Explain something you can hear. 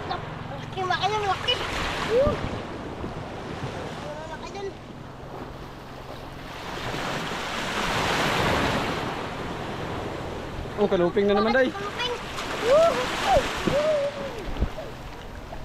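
A young boy talks and calls out excitedly nearby.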